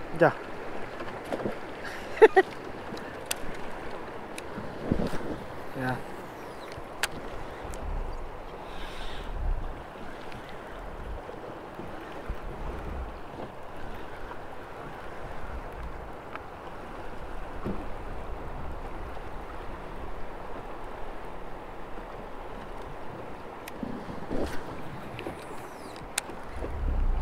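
A fishing reel clicks and rattles in hand.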